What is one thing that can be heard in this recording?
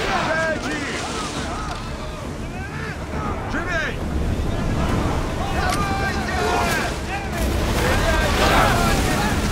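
Rough sea waves crash and rush against a ship's hull.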